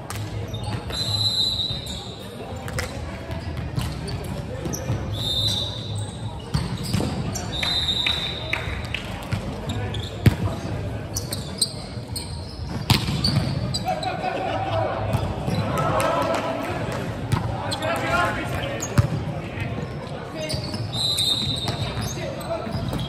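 Shoes squeak sharply on the hall floor.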